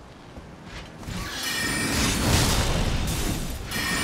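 A magic blast roars loudly.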